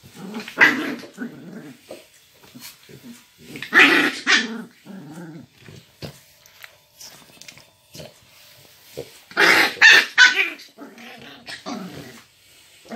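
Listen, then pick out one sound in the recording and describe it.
Puppies growl and yip as they play close by.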